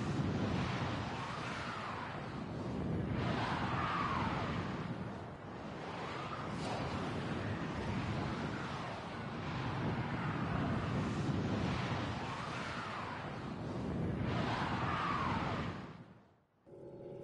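A spacecraft engine roars with a rushing whoosh, swelling and easing.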